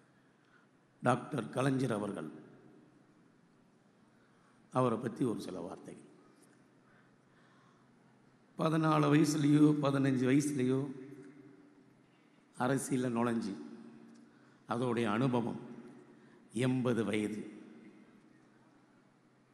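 A man speaks forcefully into a microphone over loudspeakers, in short bursts with pauses, echoing outdoors.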